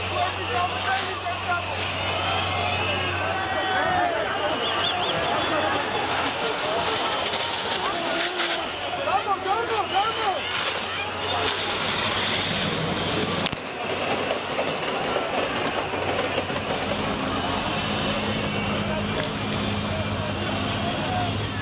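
A water cannon sprays with a loud steady rush.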